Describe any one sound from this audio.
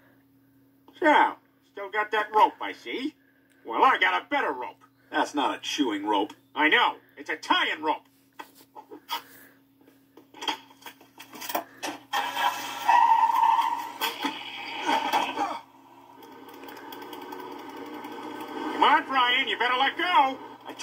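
A cartoon man speaks with animation through a small loudspeaker.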